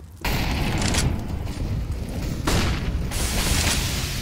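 Rifle shots crack in the distance.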